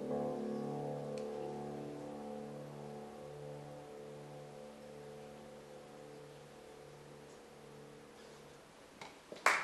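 A piano plays a slow, soft passage that fades away.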